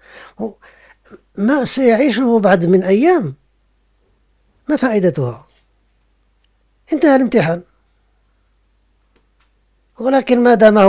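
An elderly man speaks calmly and expressively into a close microphone, with pauses between phrases.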